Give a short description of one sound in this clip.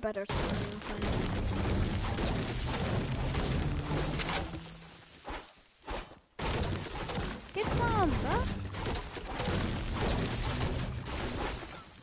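A pickaxe chops into a tree with repeated dull thuds.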